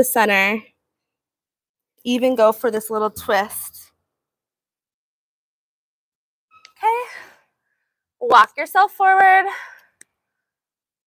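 A young woman speaks calmly and close by, pausing between phrases.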